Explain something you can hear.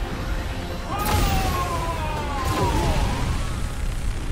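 A huge beast lets out a loud, rising and falling roar.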